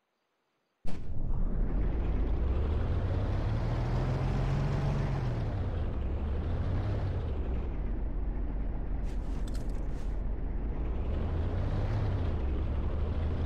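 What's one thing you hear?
Tank tracks clank and grind over the ground.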